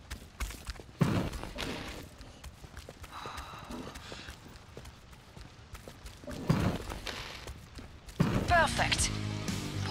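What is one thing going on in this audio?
A heavy gun fires in loud bursts.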